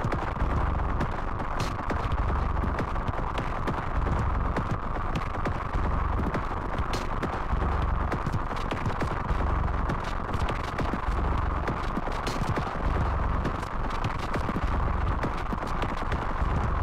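Live-coded electronic music plays with a pulsing deep bass.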